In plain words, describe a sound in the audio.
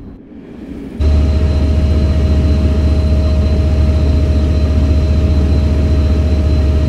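A diesel locomotive engine drones loudly as the train passes.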